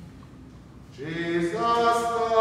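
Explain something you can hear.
A man sings a hymn in a large echoing hall.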